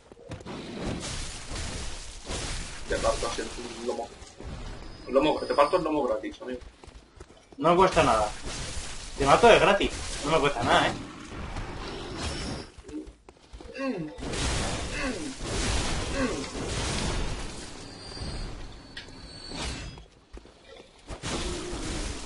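A blade swings and strikes repeatedly.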